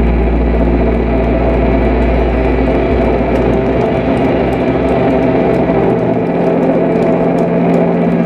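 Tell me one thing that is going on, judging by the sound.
Cymbals crash and hiss on a drum kit.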